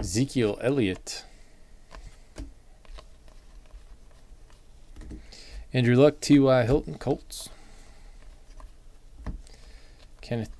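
Trading cards slide and flick against each other in someone's hands.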